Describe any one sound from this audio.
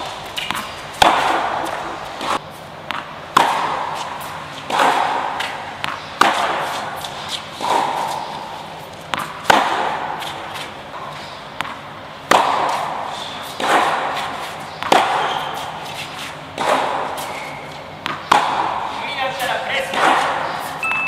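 Tennis balls are struck sharply with rackets, each hit echoing in a large hall.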